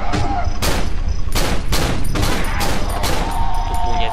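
A pistol fires loud shots in quick succession.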